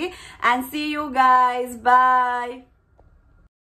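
A young woman sings a few drawn-out notes up close.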